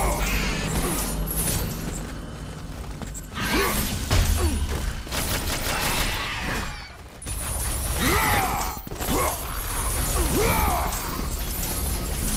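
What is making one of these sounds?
Blades slash and strike enemies in rapid, clanging blows.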